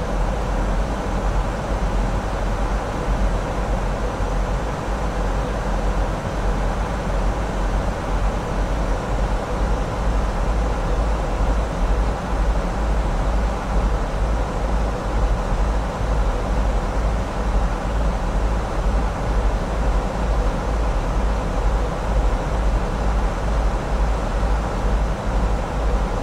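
Jet engines drone steadily.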